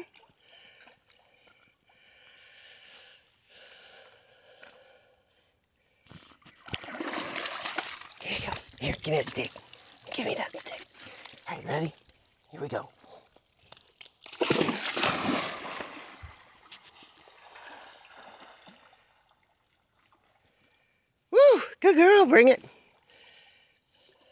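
A dog paddles through water with soft splashing.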